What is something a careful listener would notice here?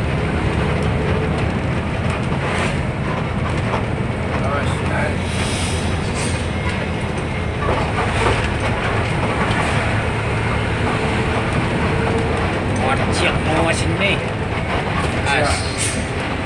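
A vehicle engine rumbles steadily from inside while driving.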